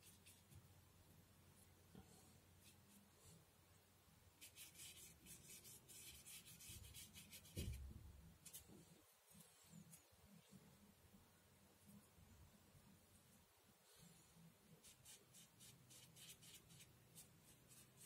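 A paintbrush strokes and dabs softly across paper.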